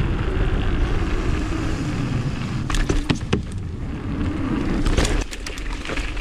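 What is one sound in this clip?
Bike tyres rattle over wooden boards.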